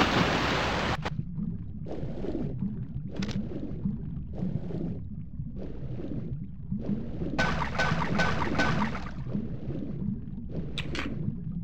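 Swimming strokes surge through water, muffled underwater.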